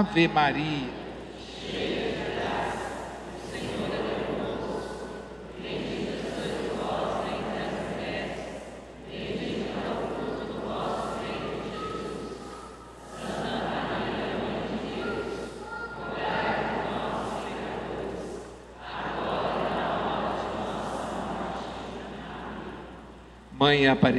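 A congregation chants together in a large echoing hall.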